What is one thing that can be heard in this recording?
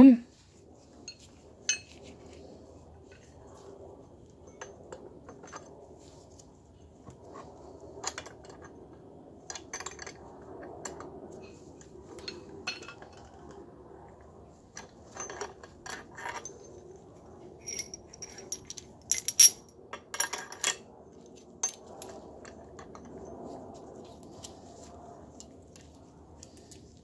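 Metal parts clink and click against each other.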